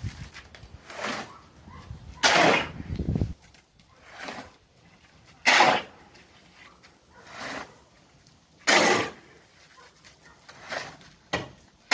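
Gravel pours off a shovel into a metal wheelbarrow.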